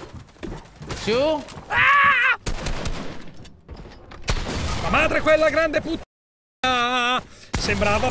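A man shouts with animation into a close microphone.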